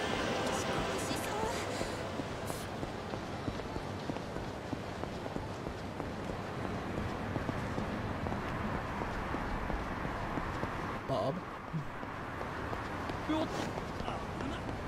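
A busy crowd murmurs in a street.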